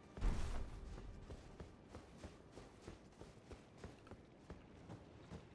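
Footsteps clank steadily on stone.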